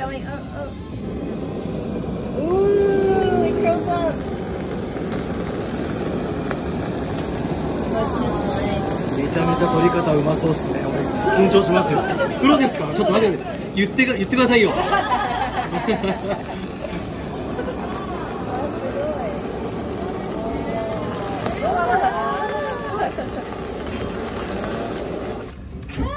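A blowtorch roars steadily with a hissing flame.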